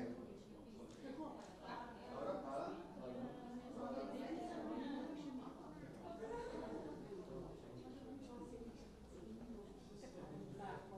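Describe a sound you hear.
A group of young people and adults chatter and talk over one another nearby.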